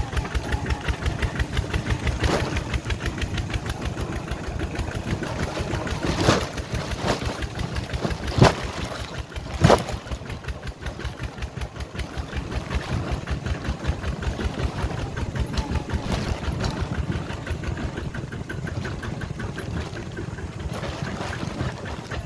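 A small engine chugs steadily and loudly close by.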